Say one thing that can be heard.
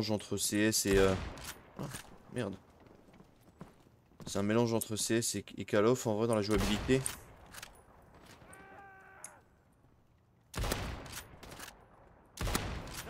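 A rifle fires with a sharp, booming crack.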